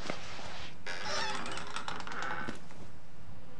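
A stall door creaks open.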